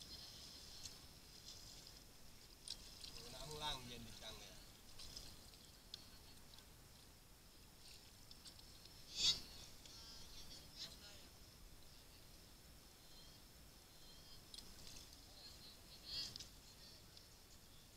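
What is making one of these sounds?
Paddles splash and dip in water.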